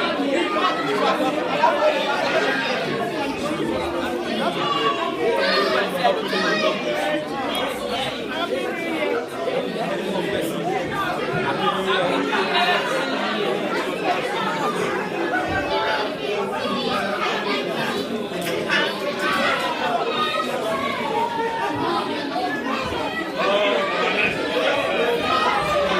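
A crowd of adults chatter and talk over one another close by.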